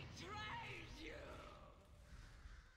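A magic spell shimmers and whooshes with sweeping, gliding tones.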